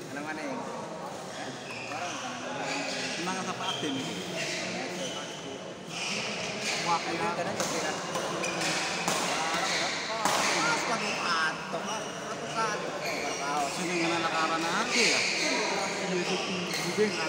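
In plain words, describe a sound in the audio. A crowd of spectators chatters and shouts in an echoing hall.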